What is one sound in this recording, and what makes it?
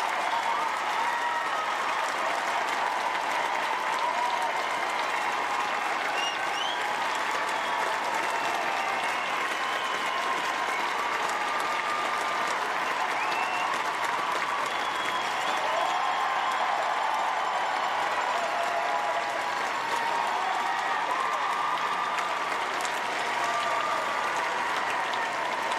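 A large crowd applauds steadily in a big echoing arena.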